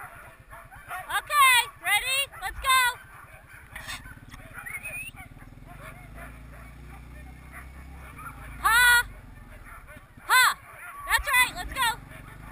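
Dogs bark and howl in sharp bursts.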